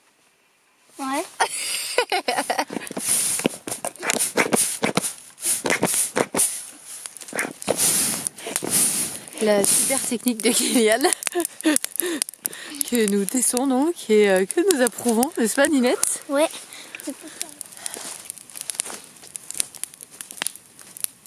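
A fire crackles and pops loudly.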